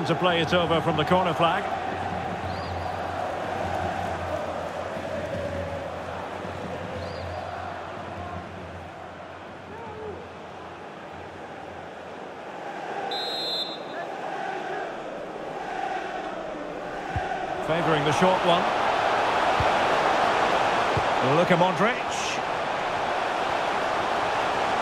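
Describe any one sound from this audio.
A large stadium crowd murmurs and roars steadily, swelling louder near the end.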